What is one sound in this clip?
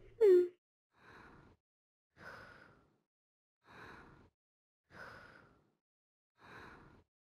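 A cartoon cat snores softly and evenly while sleeping.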